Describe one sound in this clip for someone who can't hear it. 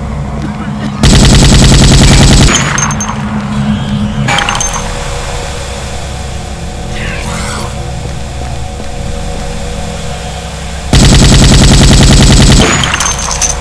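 A rapid-fire gun shoots in loud, sharp bursts.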